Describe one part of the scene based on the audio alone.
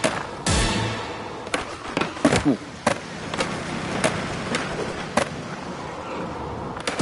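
A skateboard clacks and snaps sharply during tricks.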